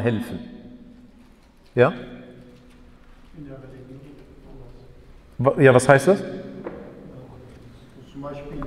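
A man speaks calmly through a microphone, with pauses, in an echoing room.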